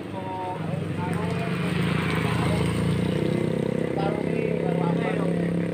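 A motorcycle engine approaches close by.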